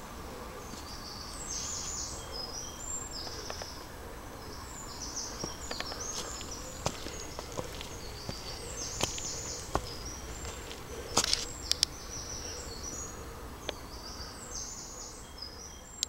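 Footsteps rustle through dry leaves on the ground.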